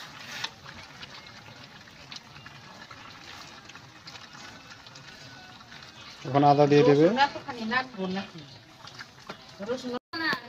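A metal spatula scrapes and stirs food in a pan.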